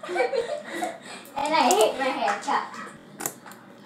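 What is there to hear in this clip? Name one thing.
Plastic crinkles in a girl's hands.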